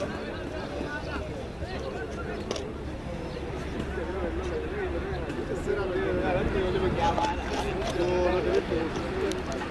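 Children shout and call out to one another outdoors.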